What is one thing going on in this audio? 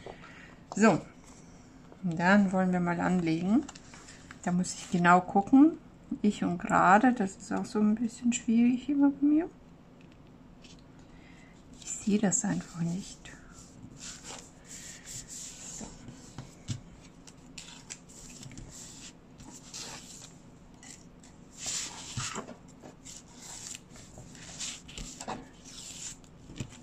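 Paper rustles and slides as hands handle a card.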